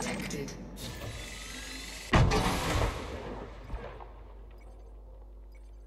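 Electronic alert tones beep from a cockpit.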